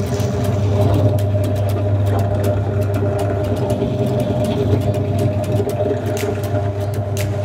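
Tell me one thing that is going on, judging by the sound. A drill bit bores into wood with a rough grinding whir.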